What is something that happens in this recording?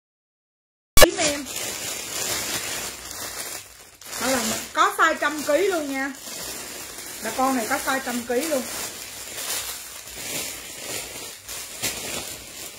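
A plastic bag crinkles as hands rummage through it.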